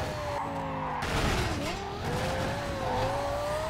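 Tyres screech as a car skids through a corner.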